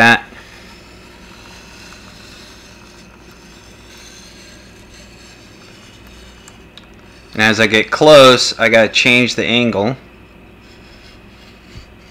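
A knife blade scrapes softly along a wet sharpening stone.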